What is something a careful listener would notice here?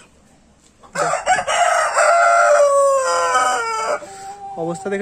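A rooster crows loudly and close by.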